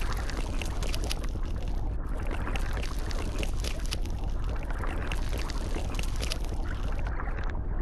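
A shark chomps on prey underwater.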